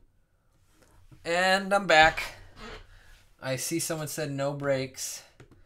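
A man speaks with animation, close to a computer microphone.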